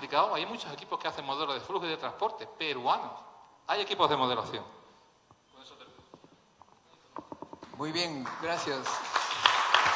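A middle-aged man speaks with animation through a microphone.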